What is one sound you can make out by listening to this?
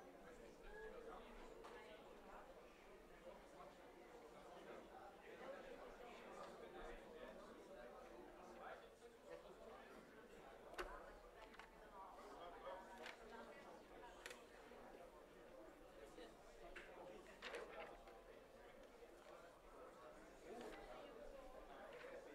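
Many people murmur and talk quietly in a large echoing hall.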